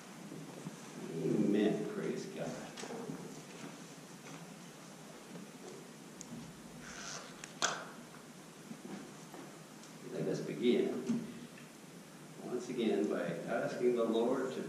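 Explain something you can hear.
A man speaks calmly into a microphone in a large echoing hall, with pauses.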